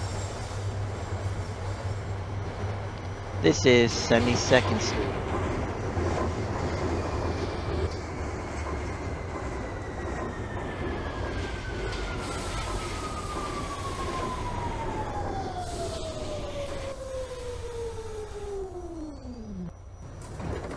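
An electric subway train rumbles along the track.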